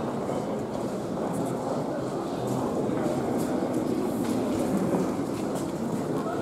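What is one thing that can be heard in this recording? A crowd of people murmurs and talks nearby in an indoor hall.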